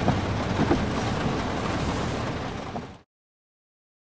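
Rain patters steadily on a car's roof and windows.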